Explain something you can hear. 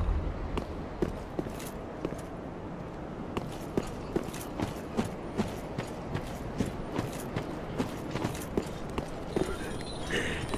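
Armored footsteps clank steadily on stone and grass.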